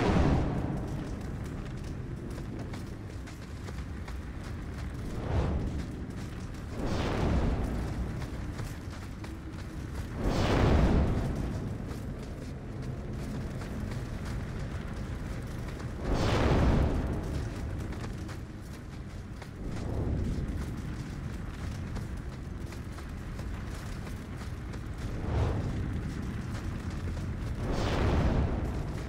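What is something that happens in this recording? Fires crackle and hiss steadily nearby.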